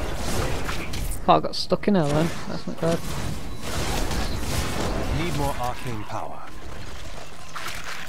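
Blows and magic blasts crash during a fierce fight.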